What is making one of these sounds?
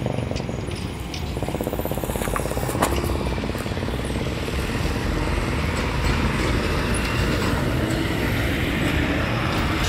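A diesel bus pulls away and drives past.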